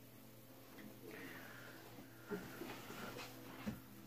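A chair creaks as a person sits down.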